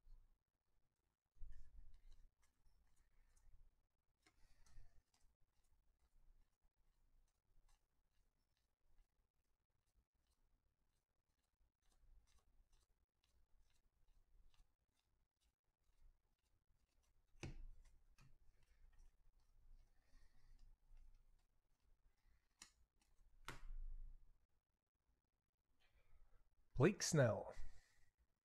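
Trading cards rustle and slide as they are shuffled by hand, close by.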